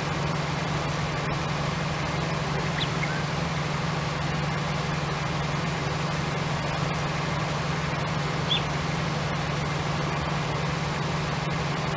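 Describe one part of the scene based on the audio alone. A harvester engine drones steadily.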